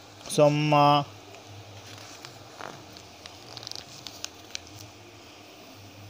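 Paper pages rustle as a book's leaves are turned.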